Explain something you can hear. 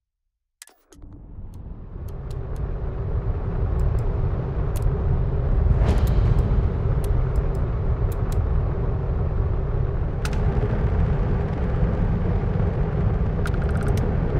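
A spaceship engine rumbles deeply and steadily.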